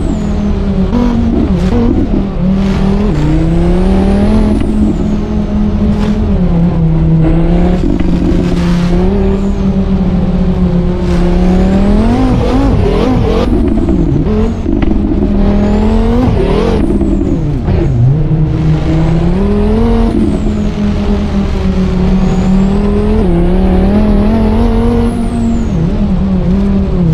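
A car engine roars loudly, its pitch rising and falling as it revs through the gears.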